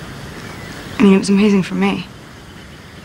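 A young woman speaks quietly and hesitantly, close by.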